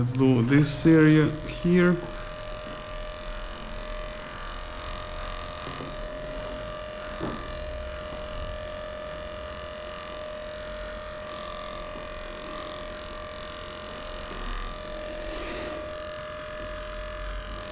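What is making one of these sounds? An electric clipper hums steadily.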